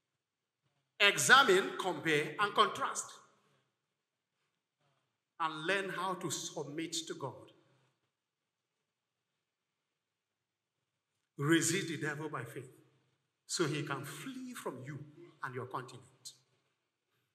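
A middle-aged man speaks with animation into a microphone, heard through loudspeakers in an echoing hall.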